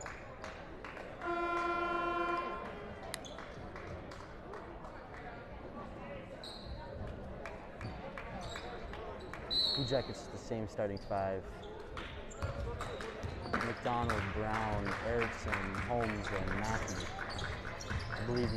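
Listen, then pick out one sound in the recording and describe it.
A small crowd murmurs and calls out.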